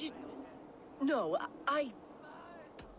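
A young woman speaks haltingly, close by.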